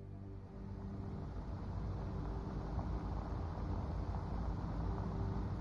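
A car engine hums steadily at low revs.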